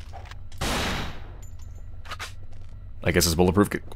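A pistol fires a single shot.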